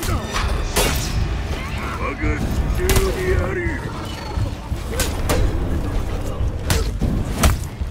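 Swords clash and strike sharply again and again.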